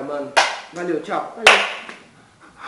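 A hand slaps a face with a sharp smack.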